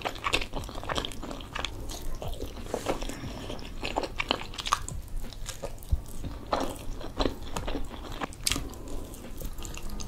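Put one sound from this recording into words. A young woman chews food with wet, smacking sounds close to a microphone.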